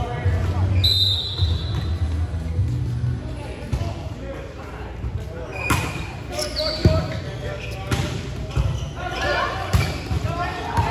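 A volleyball thumps off players' arms and hands in a large echoing gym.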